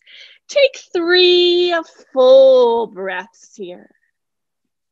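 A woman speaks slowly and calmly close to a microphone.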